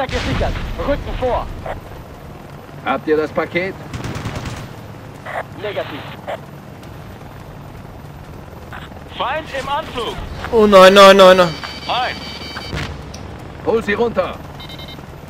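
A helicopter's rotor thumps and drones steadily close by.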